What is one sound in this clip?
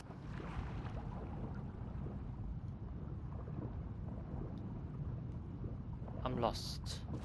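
Water rumbles low and muffled, as heard from underwater.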